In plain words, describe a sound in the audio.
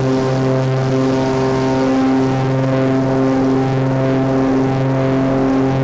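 A small propeller plane's engine drones steadily and loudly from close by.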